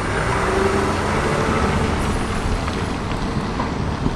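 A car drives off.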